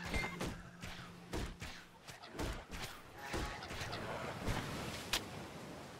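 Creatures screech as they are hit.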